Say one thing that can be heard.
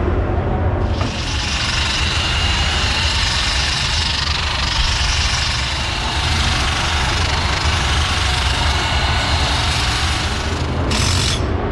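An air tool hisses loudly and steadily.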